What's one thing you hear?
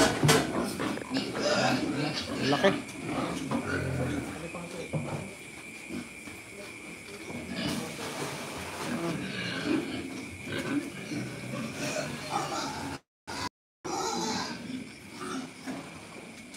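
Pigs grunt and squeal close by.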